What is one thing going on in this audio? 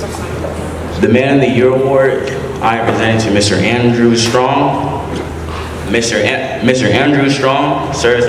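A young man speaks over a loudspeaker in a large echoing room.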